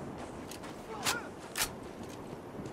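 An assault rifle fires several shots.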